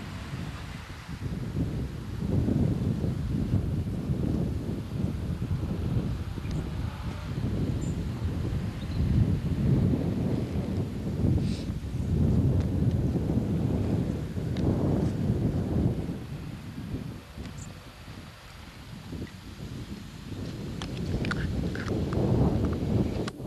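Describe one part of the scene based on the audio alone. A river flows and rushes nearby.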